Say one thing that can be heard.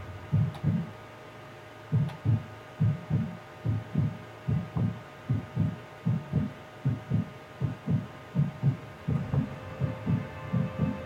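A heartbeat thumps in a steady double beat.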